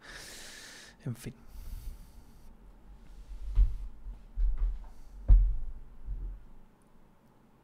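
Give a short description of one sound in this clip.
A man speaks quietly and close into a microphone.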